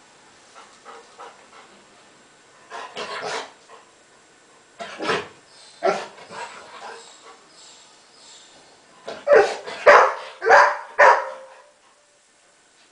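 A man talks calmly to a dog nearby.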